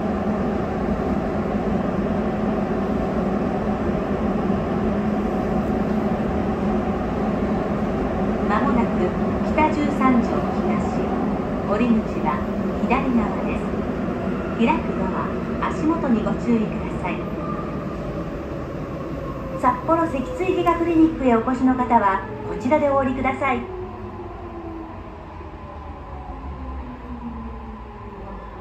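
A train rumbles steadily through a tunnel and slows as it pulls into a station.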